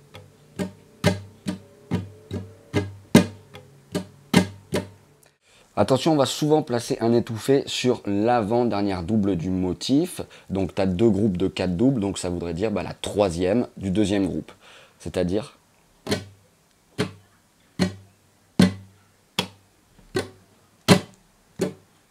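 A guitar's strings are plucked in short, single notes at a steady pace.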